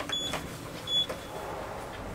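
A lift button beeps as it is pressed.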